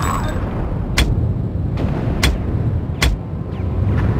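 Guns fire in sharp single shots.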